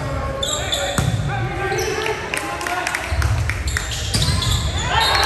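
A volleyball is struck with a loud smack.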